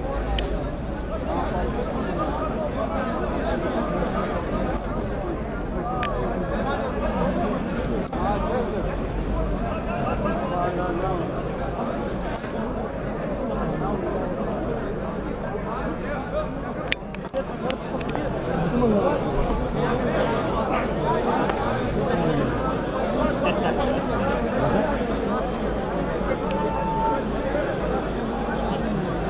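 A large crowd murmurs and calls out nearby, outdoors.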